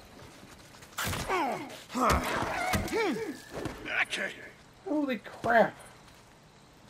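A man grunts with effort.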